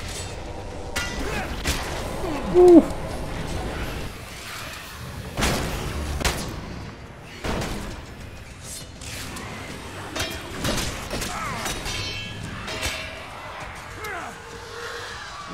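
Blades clash and heavy blows thud in a fierce fight.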